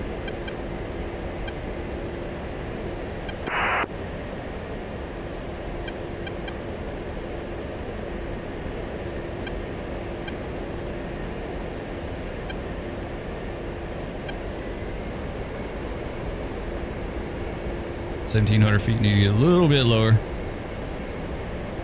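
A jet engine roars steadily with a low whine.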